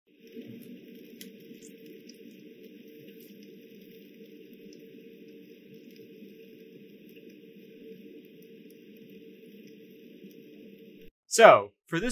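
Meat sizzles softly on a hot grill.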